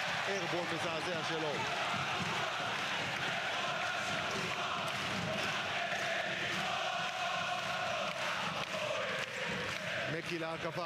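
A large crowd cheers and chants steadily in an echoing arena.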